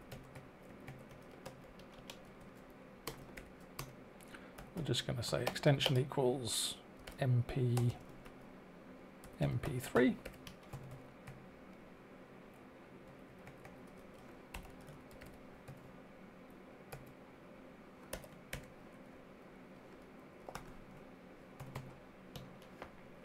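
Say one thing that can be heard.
Keys clatter on a keyboard in quick bursts.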